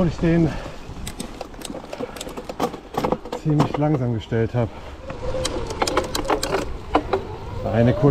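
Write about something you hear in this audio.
A bicycle rattles and clatters over bumps.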